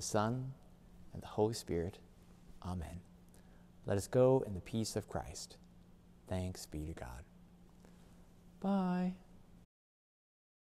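A young man speaks warmly and with animation, close to the microphone, in a softly echoing room.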